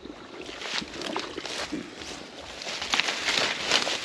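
Leafy plants rustle and brush close by.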